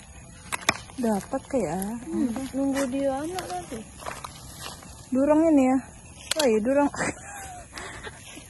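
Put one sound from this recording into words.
A young woman talks excitedly, close by.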